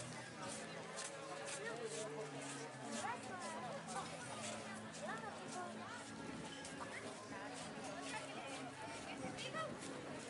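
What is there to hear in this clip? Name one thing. People chatter in a lively outdoor crowd.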